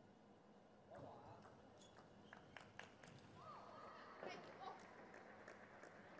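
A table tennis ball bounces lightly on a table before a serve.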